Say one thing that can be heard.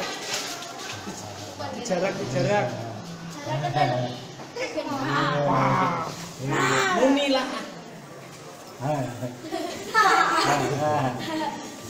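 A young child talks and squeals excitedly close by.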